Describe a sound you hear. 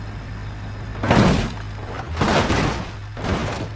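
A car tumbles and bangs over and over.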